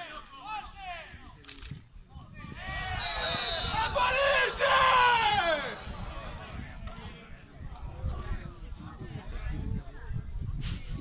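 Men shout to each other across an open-air football pitch, some way off.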